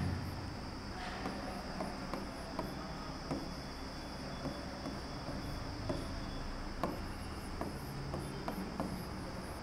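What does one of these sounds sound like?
A pen taps and scratches on a board.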